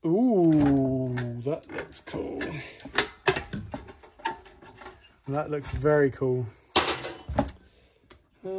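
Metal parts clatter and knock as a casing is pulled apart by hand.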